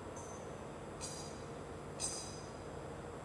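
A metal cup clinks lightly against a hard surface.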